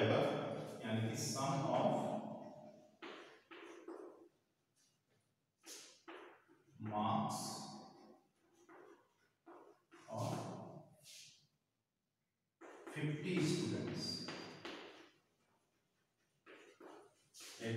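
A man speaks in a teaching voice, pausing often.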